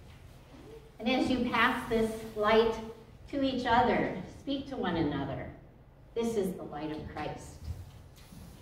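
An elderly woman speaks calmly into a microphone in a large echoing room.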